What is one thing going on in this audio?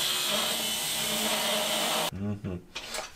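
An angle grinder grinds metal with a loud, high whine.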